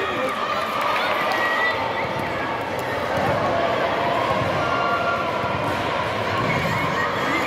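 Young women cheer and chatter excitedly in a large echoing hall.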